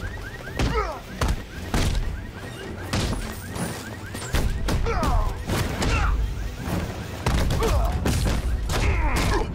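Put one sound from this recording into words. Punches and kicks land in quick succession with heavy thuds.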